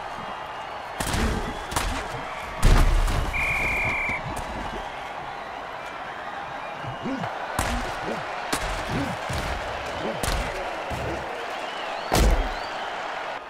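Heavy blows thud as players tackle each other.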